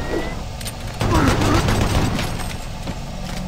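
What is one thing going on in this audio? A heavy gun fires a rapid burst of loud shots.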